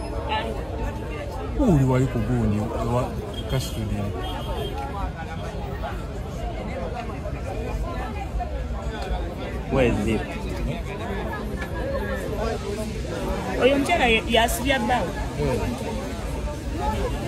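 A crowd of men and women talk and call out nearby, outdoors.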